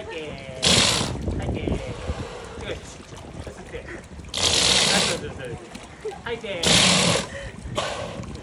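A walrus snorts loudly, blowing air out in short bursts.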